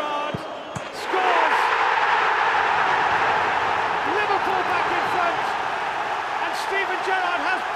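A large stadium crowd erupts into a loud roar.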